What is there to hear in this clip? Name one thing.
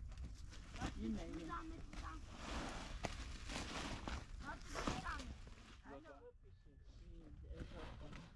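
Wind rumbles softly outdoors.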